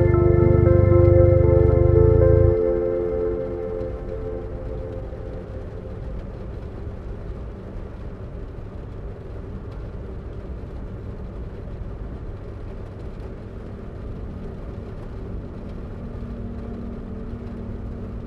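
Tyres hiss along a wet road.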